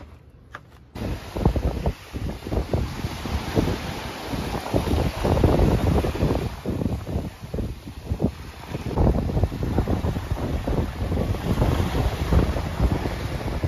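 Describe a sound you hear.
Small waves wash gently onto a sandy shore.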